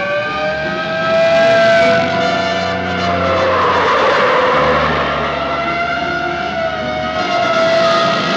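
Motorcycle engines roar along a road.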